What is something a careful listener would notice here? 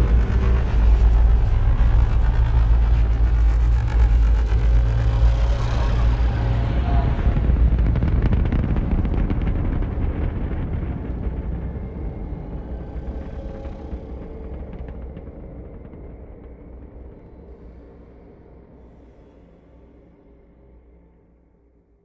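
A spaceship's engines roar with a deep rumble and slowly fade away.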